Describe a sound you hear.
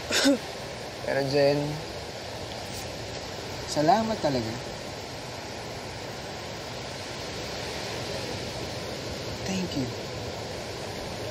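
A young man speaks calmly up close.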